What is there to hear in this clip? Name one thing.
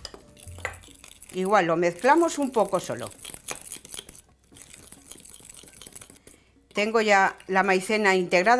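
A fork whisks batter, tapping and scraping against a glass bowl.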